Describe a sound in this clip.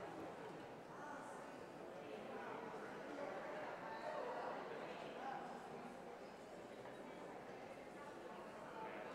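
Several women chat quietly nearby.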